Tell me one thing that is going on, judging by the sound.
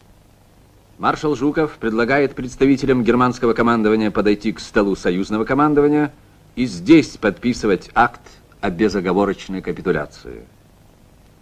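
A man reads out loudly.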